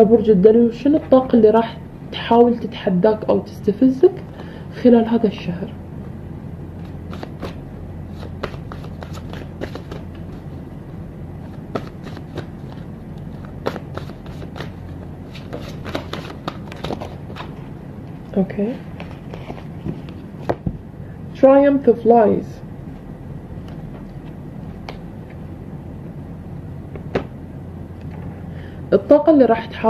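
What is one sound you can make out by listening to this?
A young woman speaks calmly and close by, with long pauses.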